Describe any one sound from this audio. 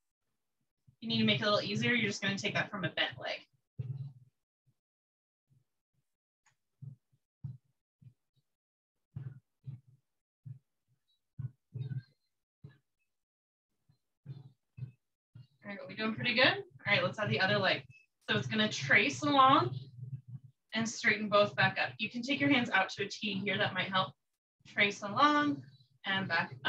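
A woman speaks calmly, heard close through a microphone.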